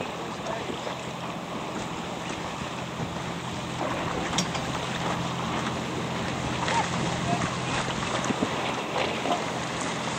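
Choppy waves splash and slap.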